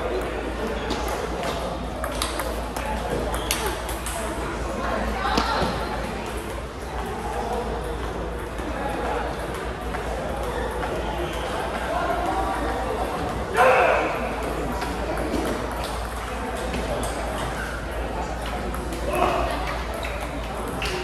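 Table tennis balls click against paddles and tables in a large echoing hall.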